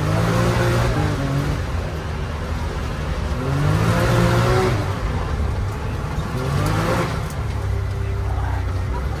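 A car engine roars and revs up and down.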